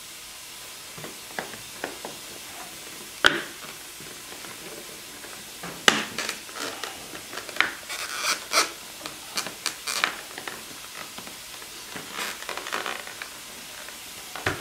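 Plastic parts click and knock against each other.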